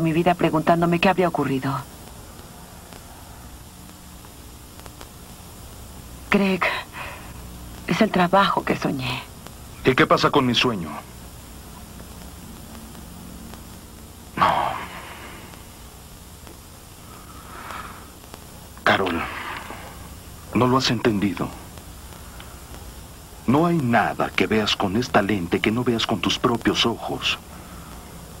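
A man speaks in a low, tense voice nearby.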